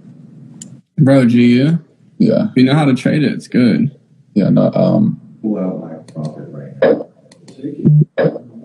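A young man talks with animation over an online call.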